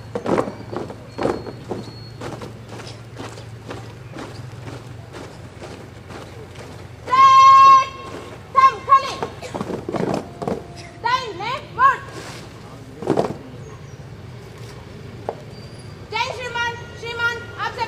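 Many feet stamp and shuffle in rhythm on the ground outdoors.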